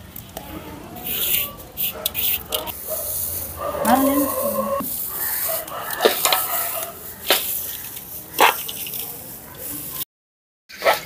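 Hands toss and mix dry, crunchy fried noodles with a crisp rustling and crackling.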